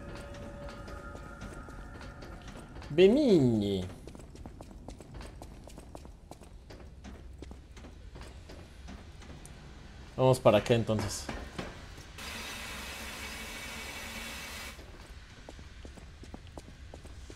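Footsteps run on a hard stone floor.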